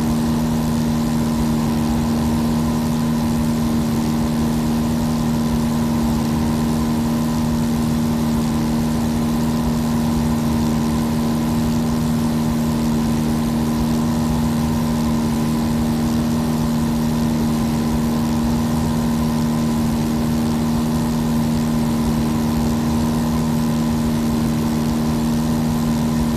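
A small propeller plane's engine drones steadily throughout.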